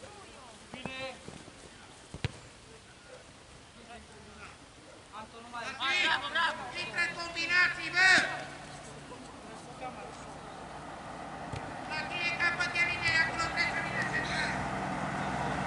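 Young men shout and call out across an open field at a distance.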